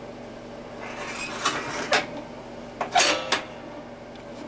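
A washing machine dial clicks and knocks as it is turned.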